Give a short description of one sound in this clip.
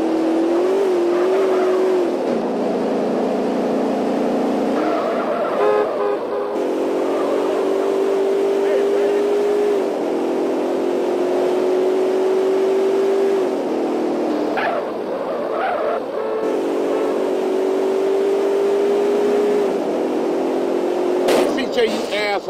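A car engine hums steadily, its pitch shifting as it changes gear.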